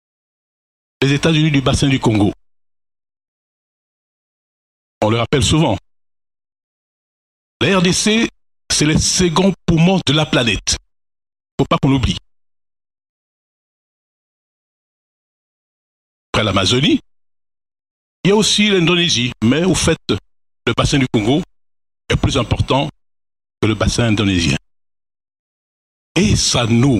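A middle-aged man speaks calmly into a microphone, in bursts with pauses, heard through a loudspeaker.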